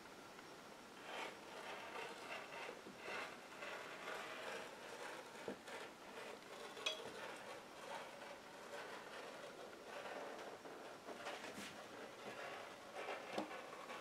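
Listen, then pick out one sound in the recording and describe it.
A rotary cutter rolls softly through fabric.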